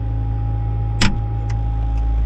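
A sharp metal clunk rings out close by.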